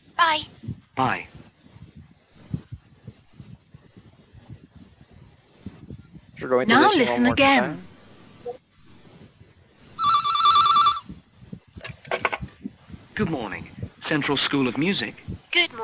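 A young man speaks in short bursts, heard through an online call.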